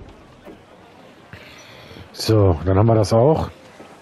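Waves wash against a sailing ship's hull.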